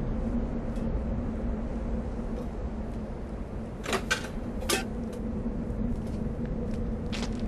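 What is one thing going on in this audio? Flames roar and crackle as things burn.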